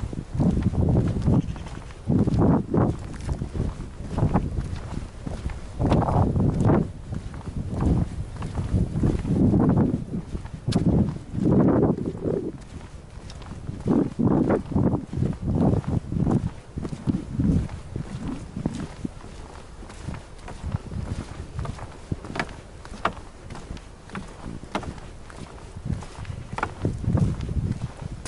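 Strong wind gusts rumble and buffet outdoors.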